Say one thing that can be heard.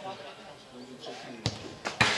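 A football is kicked with a dull thud in the distance.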